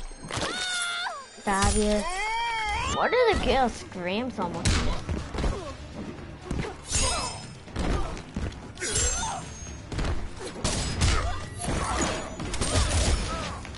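Icy magic whooshes and crackles.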